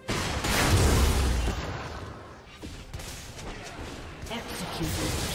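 Magic spells whoosh and blast in a fast fight.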